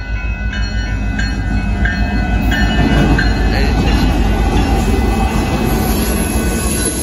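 A diesel locomotive rumbles loudly as it passes close by.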